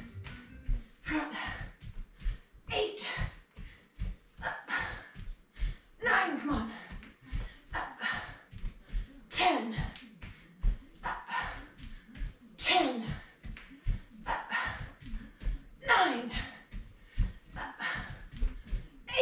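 Bare feet thump softly on a mat.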